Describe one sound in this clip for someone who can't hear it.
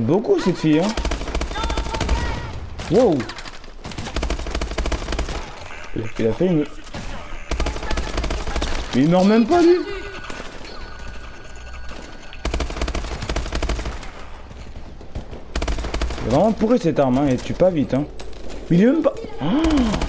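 Rapid bursts of automatic gunfire crackle loudly.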